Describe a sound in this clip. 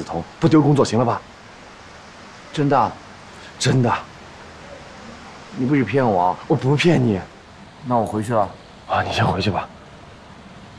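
A young man speaks earnestly, close by.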